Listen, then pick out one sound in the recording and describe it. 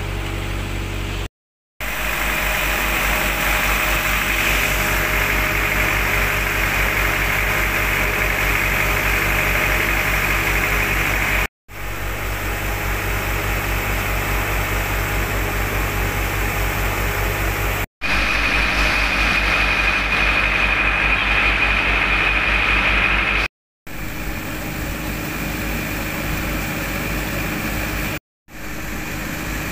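A pump engine drones steadily with a fast, pulsing throb.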